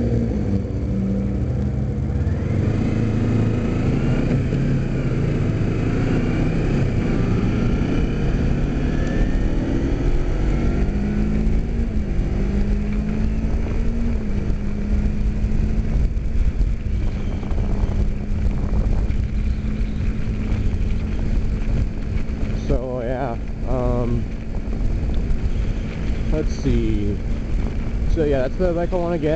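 A motorcycle engine hums and changes pitch as the rider speeds up and slows down.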